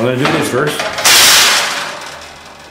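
A sheet of metal clatters down onto a metal table.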